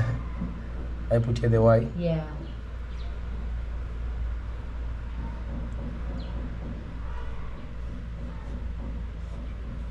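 A marker squeaks softly as it writes on a wall.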